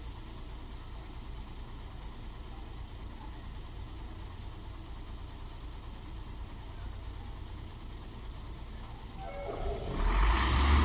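Vehicle engines idle nearby in stopped traffic.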